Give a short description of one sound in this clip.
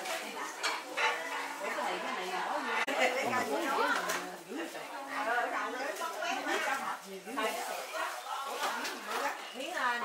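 Several women talk with animation nearby.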